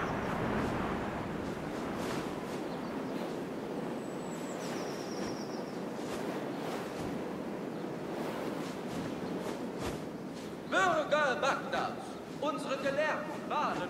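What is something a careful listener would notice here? Wind rushes steadily past a gliding eagle.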